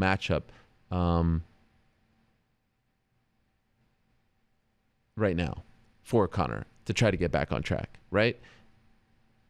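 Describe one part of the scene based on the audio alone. A man speaks into a close microphone, calmly and with pauses.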